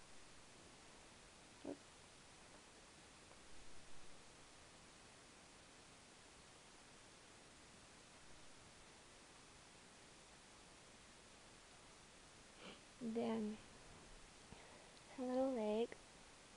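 Soft fabric rustles quietly.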